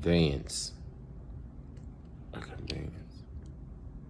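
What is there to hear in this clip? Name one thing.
A man speaks briefly and quietly, close to the microphone.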